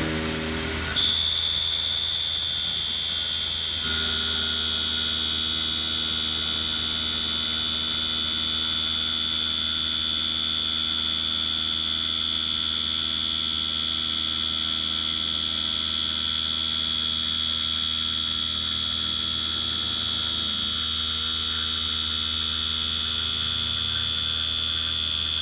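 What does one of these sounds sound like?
A cutter grinds through metal with a steady high whine.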